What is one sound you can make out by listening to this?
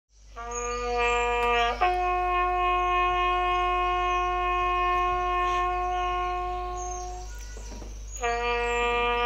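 A bugle plays long, steady notes through an online call.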